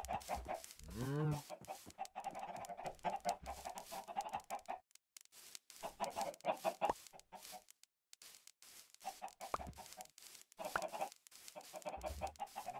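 Chickens cluck nearby.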